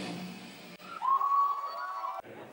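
An electric guitar squeals with feedback.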